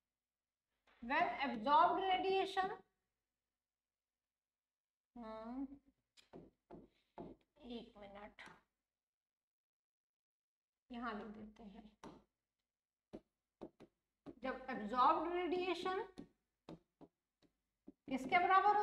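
A young woman speaks calmly, explaining, close to a microphone.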